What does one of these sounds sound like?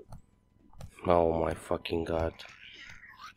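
A creature growls loudly.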